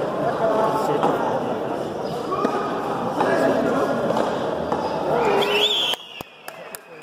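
Spectators chatter and shout in an echoing court.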